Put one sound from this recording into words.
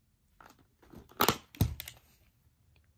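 A plastic VHS clamshell case snaps open.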